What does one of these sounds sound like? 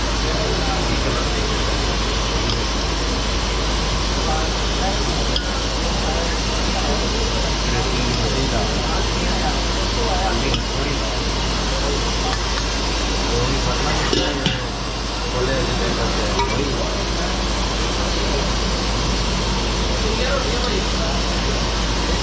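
Voices of a crowd murmur in the background.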